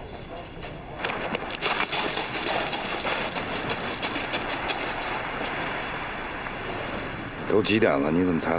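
Waves wash gently on a shore.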